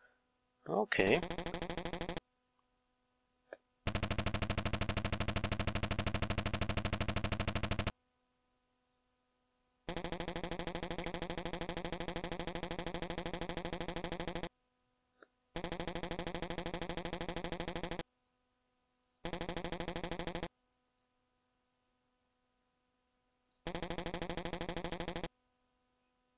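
Rapid electronic blips chatter in short bursts, like retro game text typing out.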